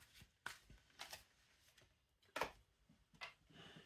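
A playing card slides and rustles as a hand picks it up.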